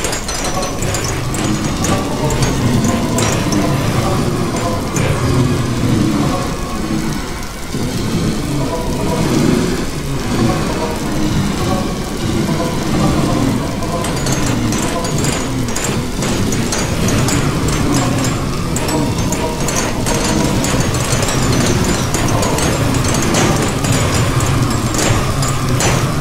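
Blocks crack and crumble repeatedly as a pickaxe digs through them.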